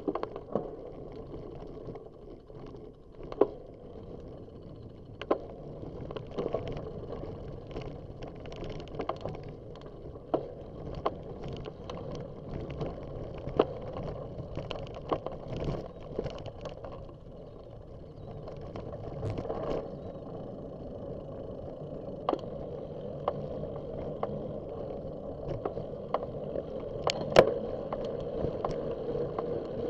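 Bicycle tyres roll over a rough path with rattles and knocks.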